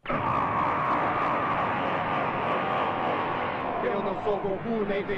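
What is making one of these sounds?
A powerful energy blast roars and rushes.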